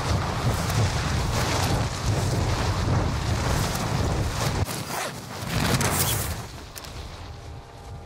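Wind rushes loudly past a falling parachutist.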